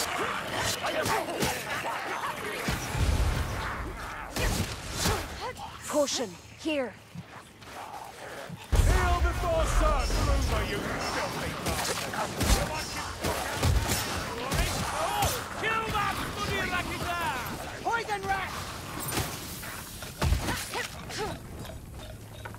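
Blades slash and thud into enemies in quick bursts.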